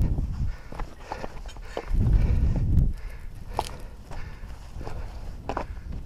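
Mountain bike tyres rattle and crunch over a rocky dirt trail.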